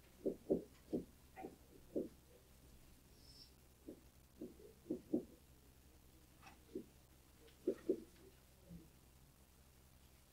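A pen taps and scratches lightly on a hard surface.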